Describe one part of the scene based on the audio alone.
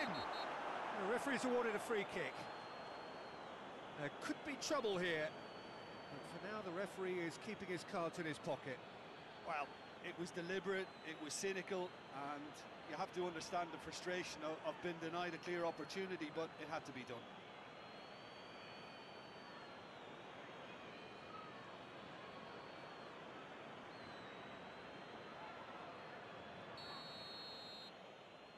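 A stadium crowd roars and chants steadily throughout.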